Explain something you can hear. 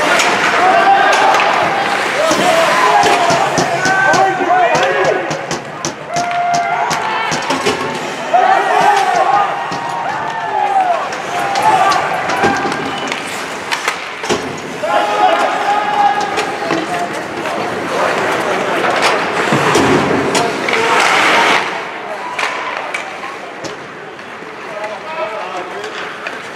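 Spectators shout and cheer in an echoing arena.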